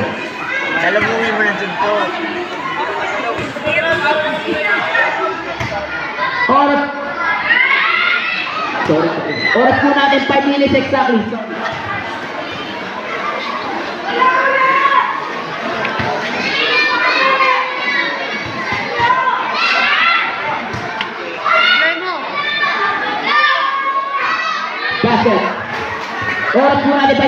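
A large crowd of onlookers chatters, shouts and cheers outdoors.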